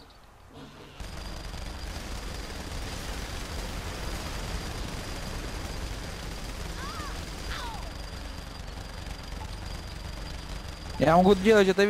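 A heavy gun fires rapid bursts.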